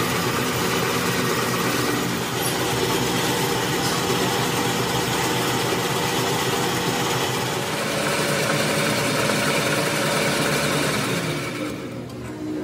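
A lathe cutting tool scrapes loudly against a spinning metal part.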